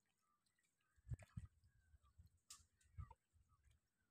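Feet splash softly in shallow water.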